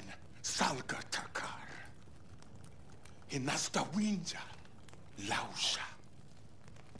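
An elderly man speaks in a low, menacing voice.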